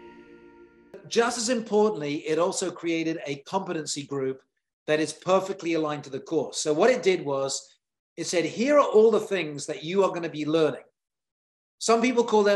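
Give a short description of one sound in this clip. A man speaks calmly into a microphone, close up.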